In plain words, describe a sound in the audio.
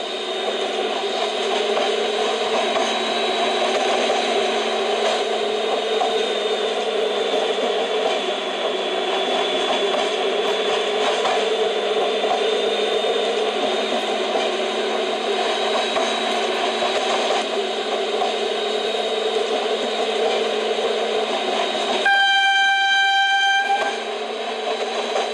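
A train engine hums and rumbles steadily as it runs along the track.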